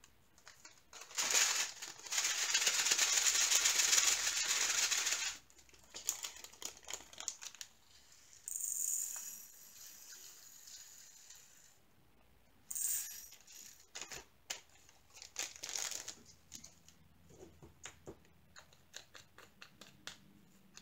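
Plastic rattles and crinkles as hands handle a small container.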